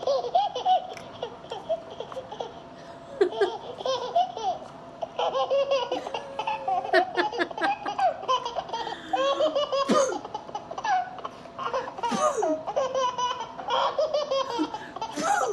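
A woman talks to a baby in a playful sing-song voice close by.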